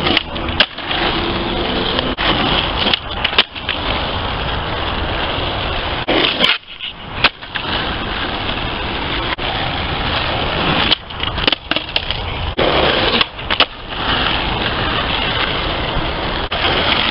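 Skateboard wheels roll loudly over rough pavement.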